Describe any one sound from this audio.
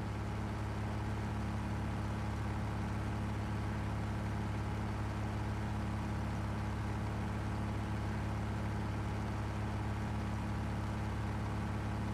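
A combine harvester's engine hums steadily at idle, close by.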